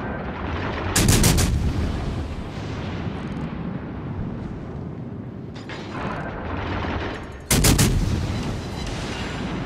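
Heavy ship guns fire loud booming salvos.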